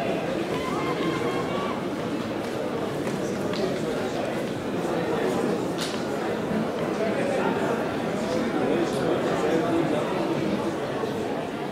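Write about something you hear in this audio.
Runners' feet patter on a track.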